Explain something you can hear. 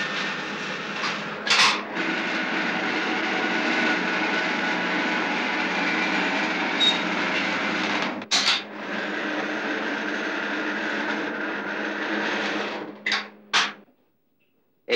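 A machine hums steadily with a constant whirr.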